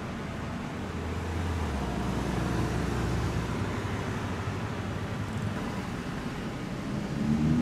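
A sports car engine rumbles low as it pulls away slowly.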